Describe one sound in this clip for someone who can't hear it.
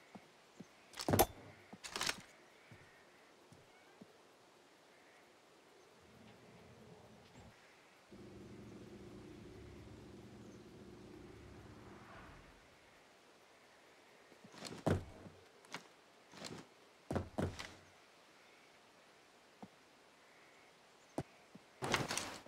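Footsteps thud and crunch now and then.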